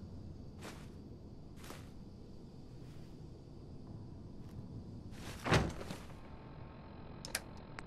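Soft menu clicks and swishes sound as items are picked.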